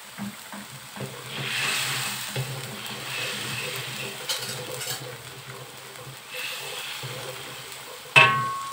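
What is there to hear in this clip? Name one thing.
A wooden spatula scrapes and stirs food in a metal pan.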